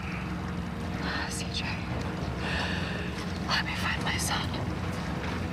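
A woman speaks pleadingly up close.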